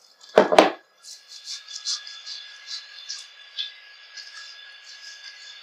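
Fingers lather shampoo in wet hair with soft squishing.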